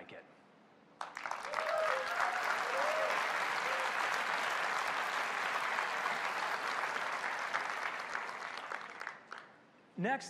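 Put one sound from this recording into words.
A large audience applauds and cheers loudly.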